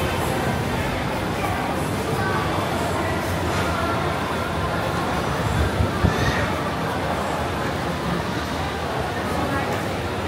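A crowd of people chatters in the background of a large indoor space.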